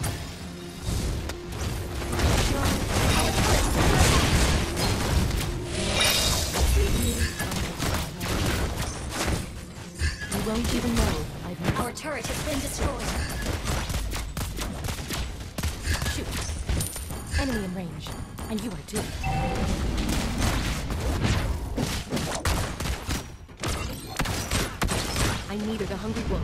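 Game sound effects of spells and blows burst and clash.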